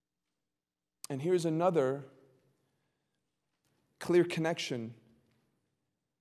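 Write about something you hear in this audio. A young man speaks calmly into a microphone in short phrases with long pauses.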